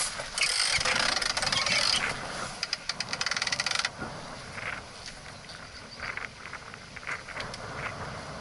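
Wind rushes across the microphone outdoors.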